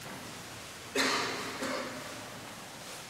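A man briefly sings a low phrase.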